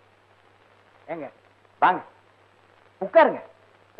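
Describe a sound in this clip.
A man speaks loudly in short, excited bursts.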